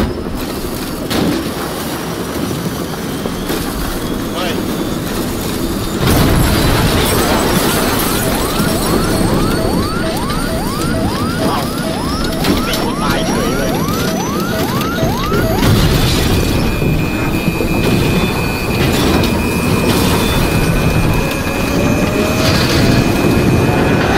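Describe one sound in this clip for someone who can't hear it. A helicopter engine and rotor roar from inside the cabin.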